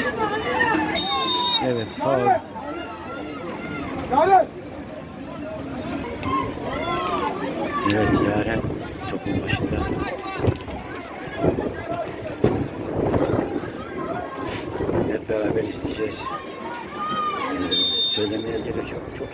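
A referee's whistle blows short shrill blasts.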